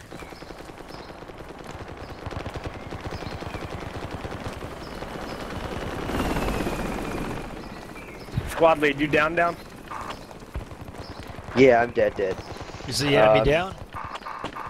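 Footsteps tread quickly on hard stone.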